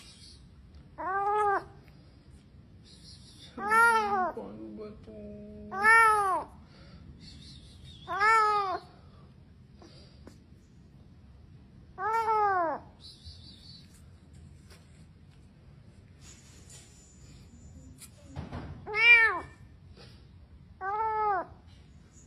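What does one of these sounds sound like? A kitten meows loudly and plaintively, again and again.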